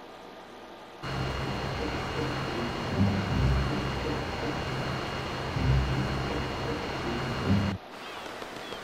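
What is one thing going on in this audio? A boat engine hums steadily across open water.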